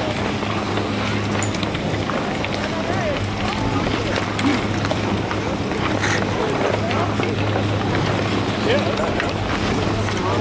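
Skis scrape and clatter on packed snow.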